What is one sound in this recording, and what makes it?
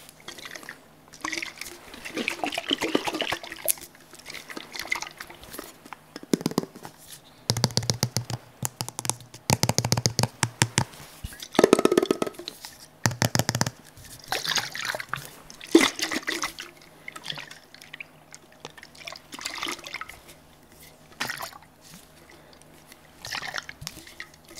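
Fingers tap and scratch rapidly on a plastic and metal container close to a microphone.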